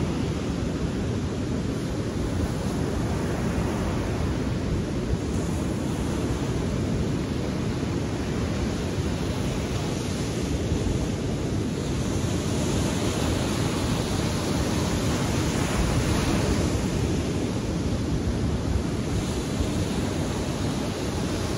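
Waves break and wash up on a beach nearby.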